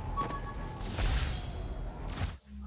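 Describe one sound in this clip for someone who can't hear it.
A soft chime rings as an item is found.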